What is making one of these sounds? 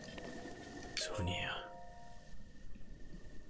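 A bright magical chime rings out briefly.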